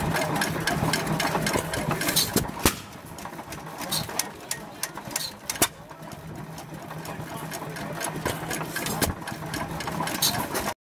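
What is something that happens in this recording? Engine valve springs snap and click rhythmically.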